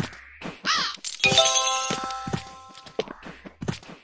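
Game sound effects chime and jingle as points are collected.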